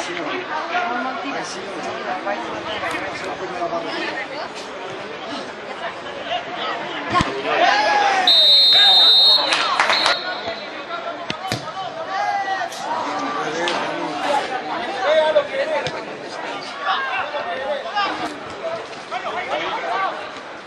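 Players shout and call out to each other across an open outdoor field.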